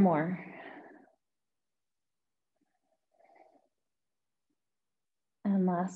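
A young woman speaks calmly into a microphone, close by.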